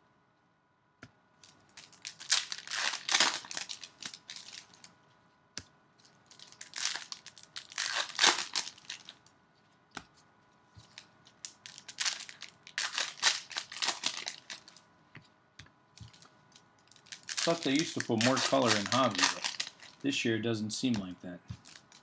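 A plastic wrapper crinkles and rustles up close.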